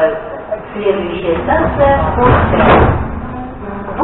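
Subway train doors slide shut with a thud.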